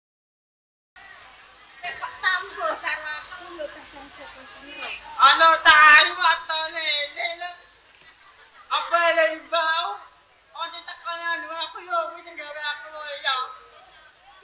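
A woman speaks expressively through a loudspeaker.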